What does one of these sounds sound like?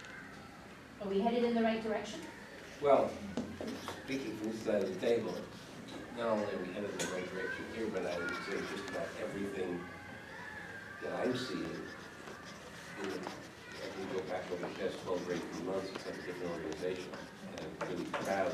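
A man speaks calmly, heard from a short distance across the room.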